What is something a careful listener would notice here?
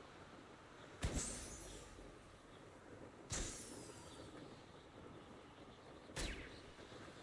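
Balloons pop with sharp bursts.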